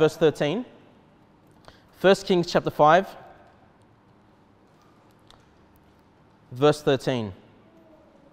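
A young man reads out calmly in short phrases, with pauses, in a room with a slight echo.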